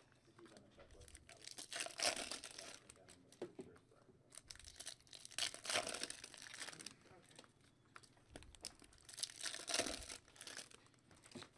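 Foil wrappers crinkle and rustle as hands tear open card packs.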